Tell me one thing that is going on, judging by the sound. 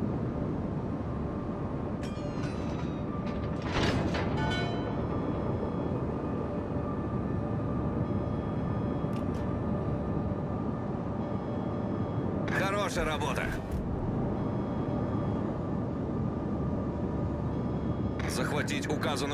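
A ship's engines rumble low and steadily.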